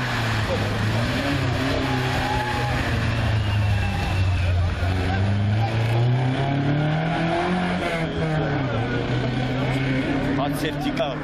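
A rally car engine roars loudly and revs up and down as the car speeds past.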